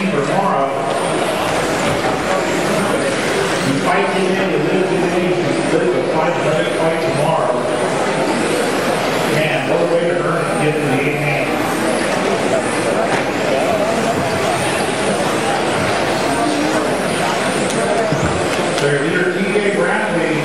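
Small electric model cars whine as they race around a track.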